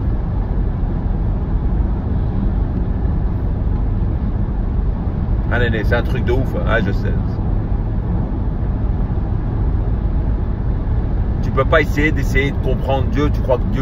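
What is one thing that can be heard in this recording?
Tyres rumble steadily on the road.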